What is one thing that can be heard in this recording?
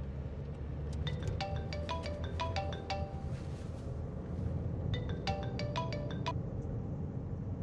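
A mobile phone rings with a short repeating tune.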